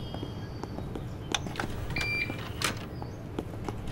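A computer disc tray slides open.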